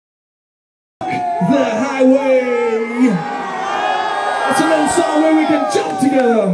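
A man sings into a microphone over the band.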